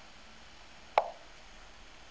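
A short click sounds as a chess move is made in an online game.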